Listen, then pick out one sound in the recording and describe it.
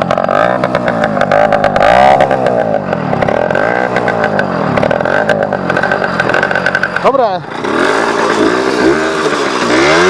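A motorcycle engine idles close by with a steady, uneven putter.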